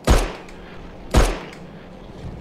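A pistol fires two loud shots.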